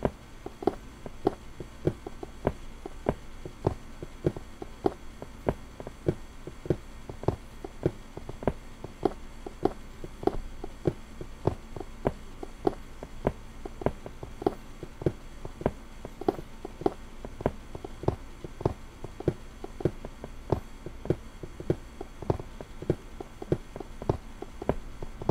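A pickaxe chips at stone in quick, steady, repeated knocks.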